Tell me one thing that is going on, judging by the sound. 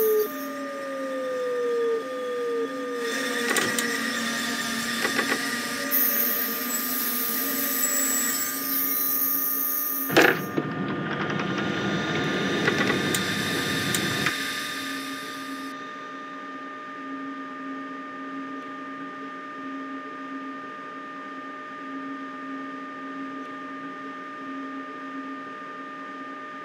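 A train's electric motors hum steadily.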